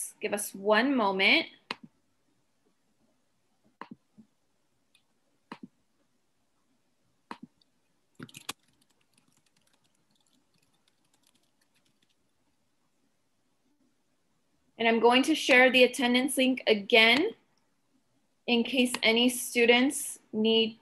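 A young woman speaks calmly over an online call, with long pauses.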